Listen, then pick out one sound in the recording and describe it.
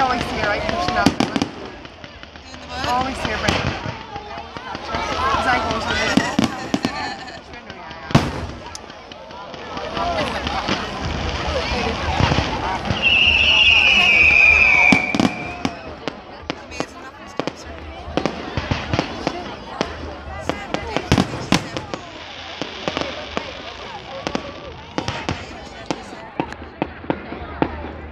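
A crowd of people chatters and calls out nearby.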